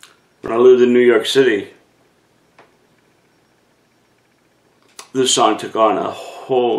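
An older man speaks calmly and close by, pausing between phrases.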